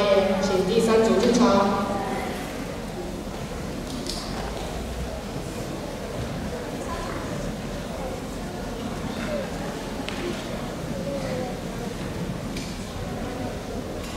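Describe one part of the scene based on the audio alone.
Children's footsteps patter across a wooden stage.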